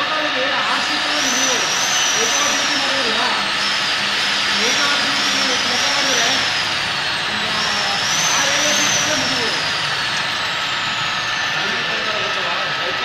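A drill bit screeches loudly as it bores into metal.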